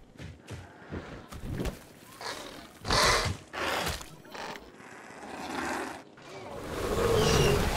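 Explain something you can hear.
Large wings flap.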